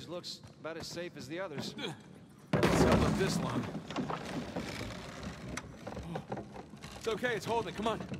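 Wooden planks creak and thud under footsteps.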